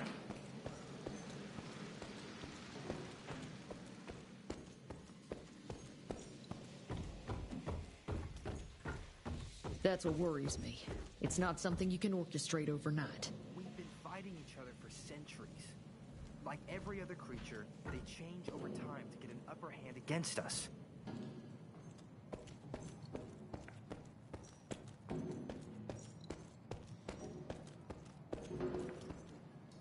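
Footsteps thud steadily across a wooden floor.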